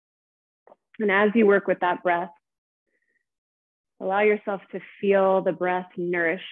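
A woman speaks calmly and softly into a close microphone.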